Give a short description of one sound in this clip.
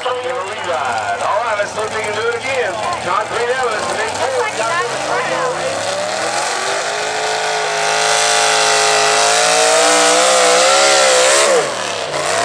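A pulling truck's engine roars at full throttle, rising in pitch before cutting off.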